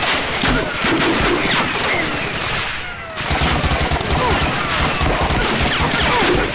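A submachine gun fires rapid bursts of loud shots.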